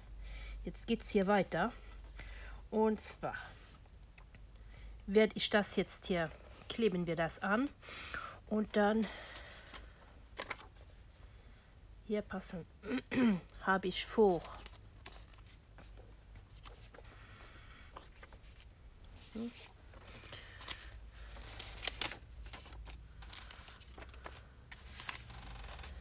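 Sheets of paper rustle and slide as hands move them.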